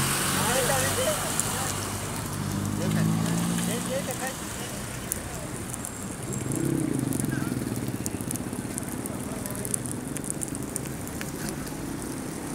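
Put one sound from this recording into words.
Flames roar and crackle from burning tyres outdoors.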